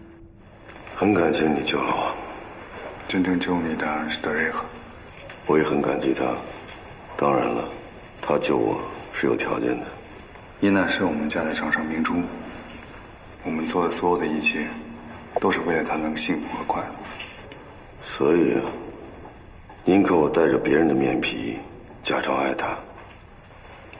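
A man speaks calmly and earnestly close by.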